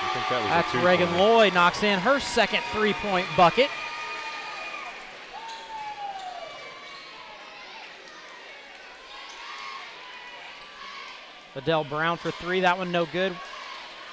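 A crowd chants and cheers loudly in a large echoing hall.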